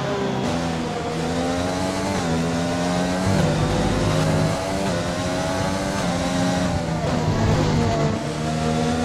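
A racing car engine screams at high revs, dropping in pitch at each gear change and climbing again.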